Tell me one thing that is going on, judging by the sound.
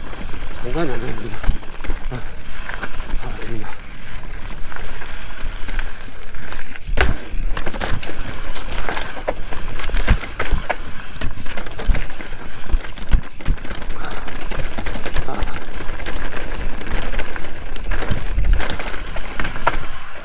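Wind buffets loudly past a moving rider.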